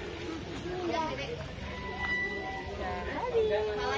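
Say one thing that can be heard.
A young girl talks excitedly nearby.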